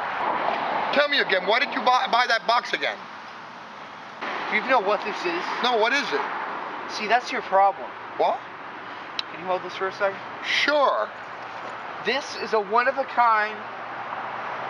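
A middle-aged man talks outdoors, heard through a close microphone.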